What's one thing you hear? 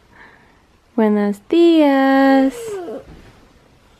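A baby girl squeals and babbles loudly up close.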